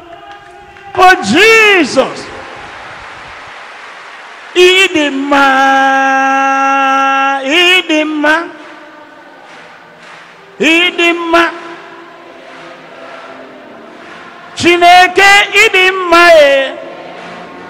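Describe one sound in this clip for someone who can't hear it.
An elderly man speaks slowly and loudly through a microphone in a large echoing hall.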